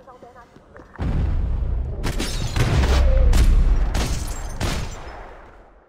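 Gunshots ring out in quick bursts, echoing loudly.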